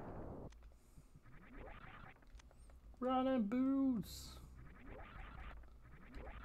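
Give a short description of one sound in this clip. A video game plays electronic sound effects.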